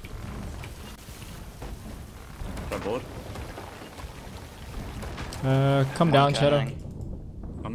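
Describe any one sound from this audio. Water sprays in through holes in a wooden hull with a steady hiss.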